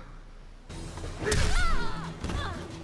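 Heavy blows land with hard thuds.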